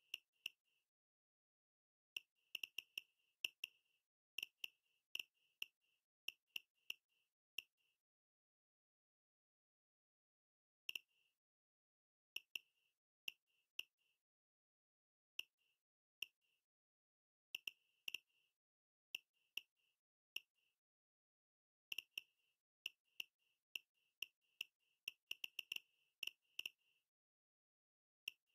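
Short electronic menu ticks sound in quick, uneven bursts.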